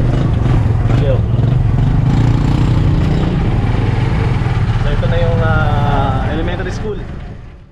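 A man talks cheerfully nearby.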